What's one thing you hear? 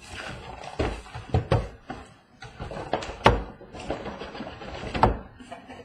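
A cardboard box scrapes and rustles as it is lifted off.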